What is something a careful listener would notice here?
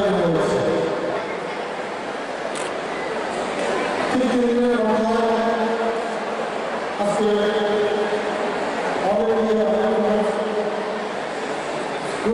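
A middle-aged man speaks forcefully to a crowd through a microphone and loudspeakers.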